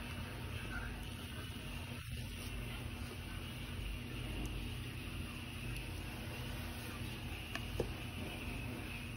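A metal fork clinks against a glass bowl.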